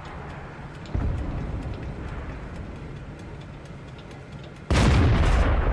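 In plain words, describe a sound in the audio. A tank cannon fires with a heavy, booming blast.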